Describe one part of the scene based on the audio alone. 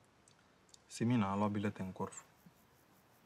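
A man speaks quietly and calmly close by.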